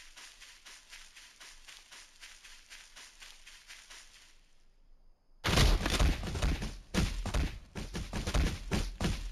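Footsteps rustle steadily through tall grass.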